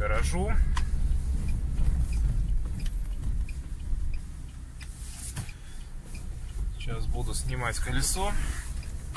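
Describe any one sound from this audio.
A car engine hums at low speed.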